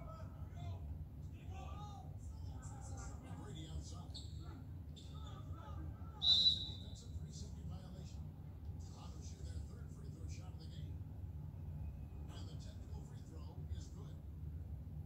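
Sneakers squeak on a court through a television speaker.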